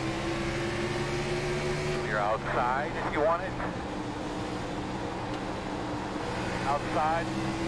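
Racing car engines drone steadily.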